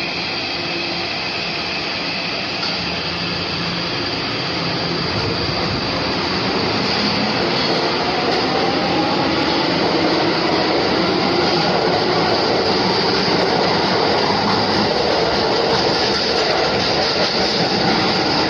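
An electric subway train pulls out of an underground station and picks up speed.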